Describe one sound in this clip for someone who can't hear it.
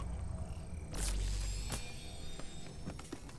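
A short chime sounds as a shield fills up.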